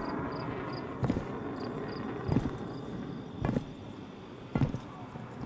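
Heavy footsteps thud on a hard surface.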